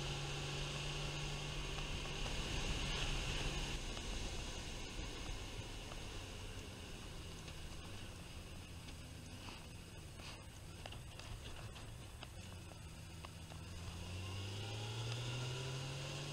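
Wind rushes past a microphone on a moving motorcycle.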